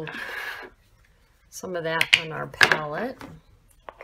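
A plastic cap on a paint tube clicks open.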